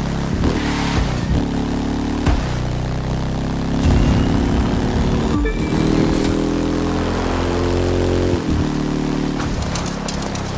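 A motorcycle engine roars loudly, its pitch rising and falling as it shifts gears.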